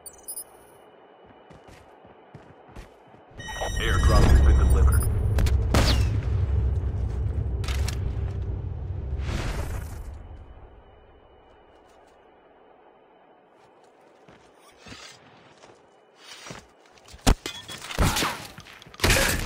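Footsteps patter on stone in a game.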